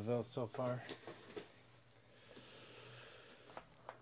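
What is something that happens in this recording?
A cardboard lid lifts off a box.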